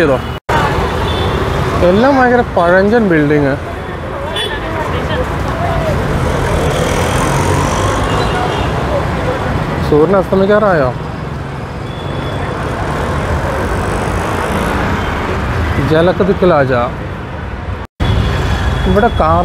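Motorbikes and auto-rickshaws rumble past in busy street traffic.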